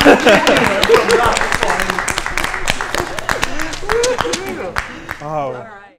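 Women and men laugh together.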